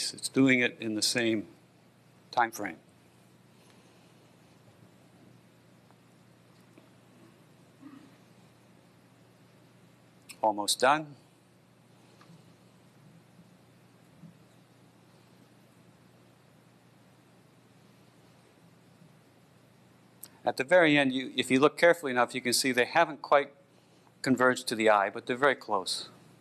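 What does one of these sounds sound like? A man speaks through a microphone in a large hall, pausing often.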